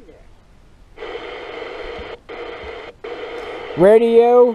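A small loudspeaker plays a steady, buzzy sound.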